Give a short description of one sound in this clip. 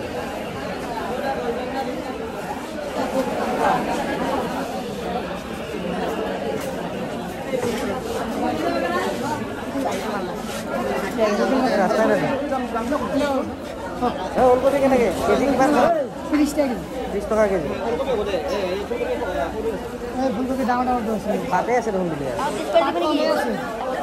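A crowd of men and women chatter all around in a busy, echoing hall.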